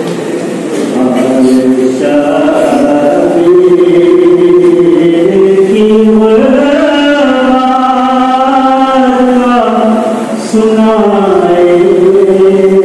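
A man sings a lament through a microphone.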